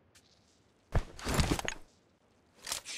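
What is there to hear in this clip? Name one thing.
A scoped rifle fires a single shot.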